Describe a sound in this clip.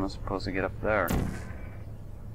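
A gun fires with a sharp electric zap.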